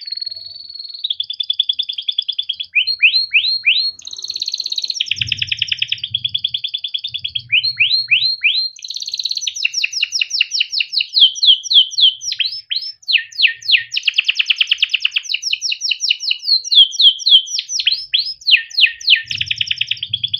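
A canary sings loudly and close by, with rapid trills and quick rising whistles.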